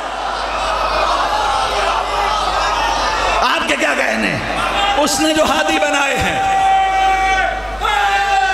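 A crowd of men chants along loudly.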